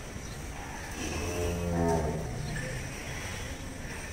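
A bull grunts and lows.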